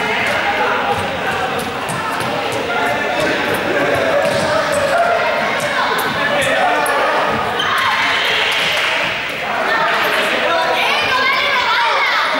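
Children shout and chatter throughout a large echoing hall.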